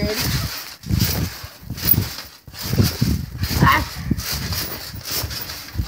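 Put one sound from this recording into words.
A trampoline mat thumps rhythmically as someone bounces on it.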